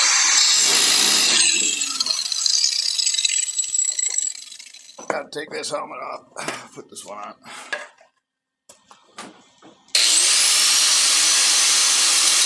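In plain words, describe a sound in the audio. An angle grinder whines loudly as it grinds metal.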